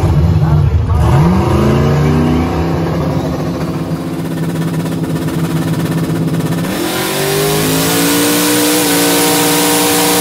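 A car engine revs up sharply and roars as the car speeds away.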